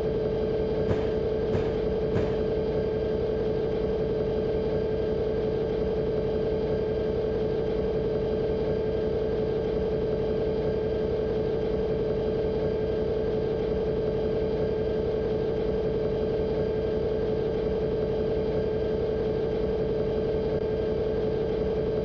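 A locomotive engine drones steadily.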